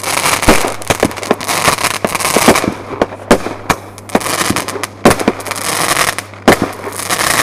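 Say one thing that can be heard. Sparks hiss and fizz from fireworks.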